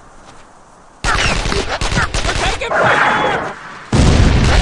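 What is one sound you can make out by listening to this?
A rocket launcher fires with a loud whooshing blast.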